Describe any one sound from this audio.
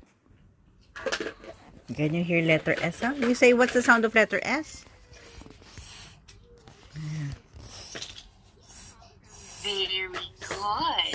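A small child speaks close by in a high voice, with animation.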